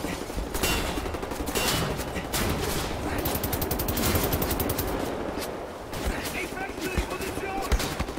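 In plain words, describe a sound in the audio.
A heavy machine gun fires long, rattling bursts.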